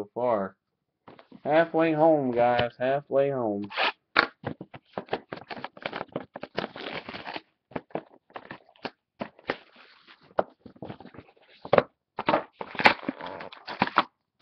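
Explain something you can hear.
Boxes rustle and knock as hands handle them.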